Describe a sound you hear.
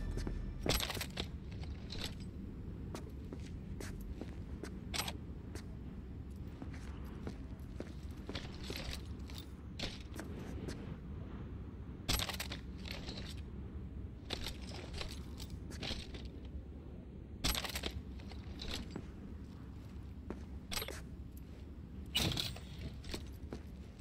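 Footsteps thud softly on a carpeted floor.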